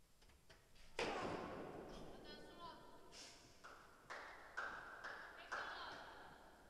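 A tennis racket strikes a ball with sharp pops in a large echoing hall.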